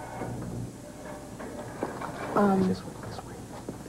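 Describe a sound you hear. A woman speaks softly, close by.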